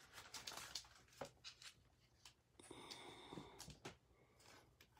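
A plastic sleeve crinkles softly as it is handled.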